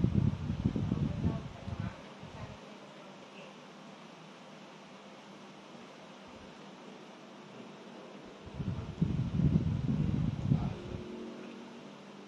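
Air from a fan blows in gusts against the microphone.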